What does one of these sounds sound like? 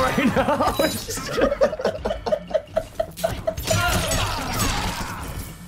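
Punches and kicks land with sharp, heavy thuds in a video game fight.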